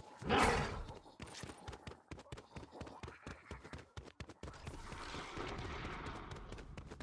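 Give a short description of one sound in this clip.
Quick footsteps run on a hard surface.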